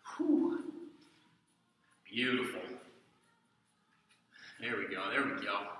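A man speaks calmly to the listener in a room with a slight echo.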